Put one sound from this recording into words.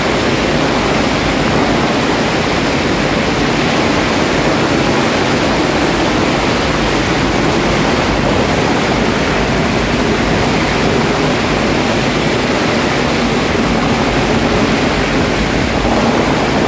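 A dense crowd cheers and shouts loudly outdoors.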